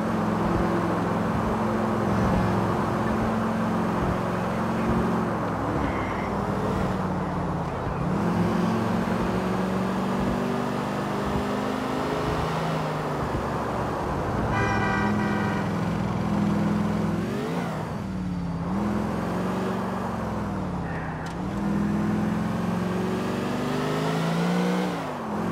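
A car engine hums and revs up and down as the car drives fast.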